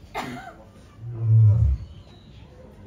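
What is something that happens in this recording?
A male Asiatic lion gives a deep, short grunt.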